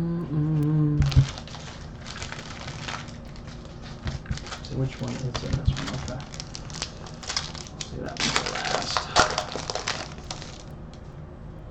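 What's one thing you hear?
Foil card wrappers crinkle and tear as hands open them.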